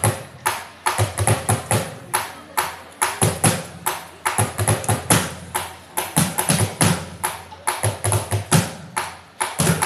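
A drum ensemble beats out a fast, lively rhythm outdoors.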